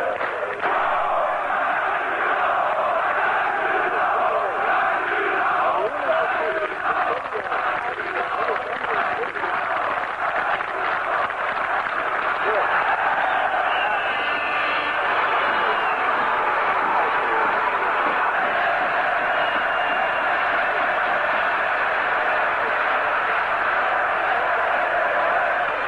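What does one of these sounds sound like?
A huge stadium crowd chants and sings loudly in unison.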